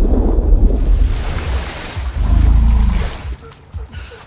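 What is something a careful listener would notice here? An elephant splashes loudly in water.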